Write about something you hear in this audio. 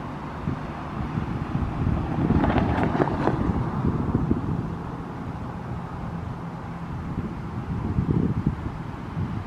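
An electric train approaches along the tracks with a low rumble.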